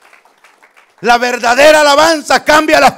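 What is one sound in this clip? A middle-aged man speaks forcefully into a microphone, heard through a loudspeaker.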